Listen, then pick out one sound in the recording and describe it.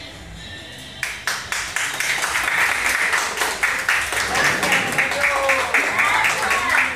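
A group of elderly people claps their hands together.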